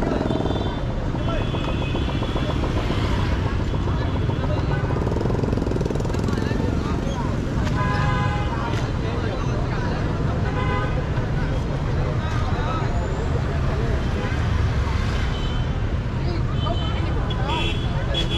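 Scooters ride past on the street.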